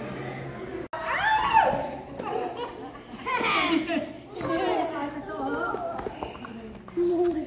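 Young children shout and laugh nearby.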